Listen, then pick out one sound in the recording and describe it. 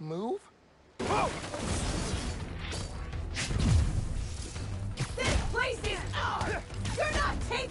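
Heavy blows and thuds land in a fast fight.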